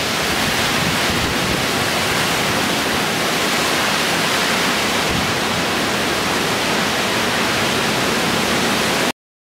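Cyclone-force wind roars through trees.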